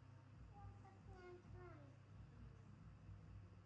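A young girl speaks in a high voice close by.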